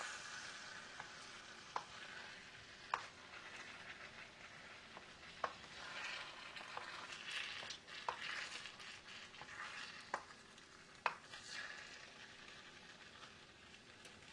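A wooden spoon knocks and scrapes against a pan.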